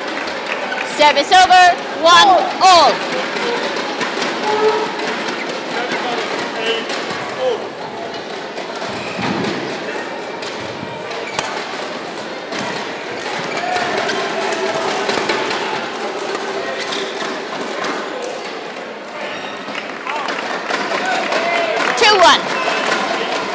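A young man shouts loudly in a large echoing hall.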